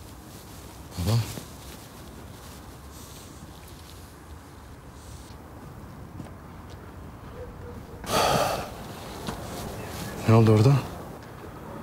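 A man speaks briefly in a low, tense voice close by.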